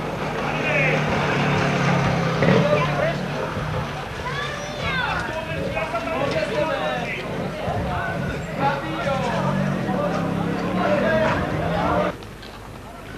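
A tractor engine rumbles nearby.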